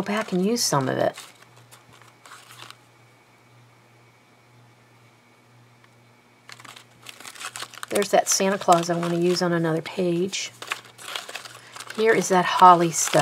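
Paper rustles and crinkles.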